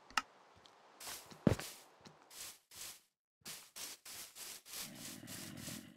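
Footsteps shuffle softly over grass.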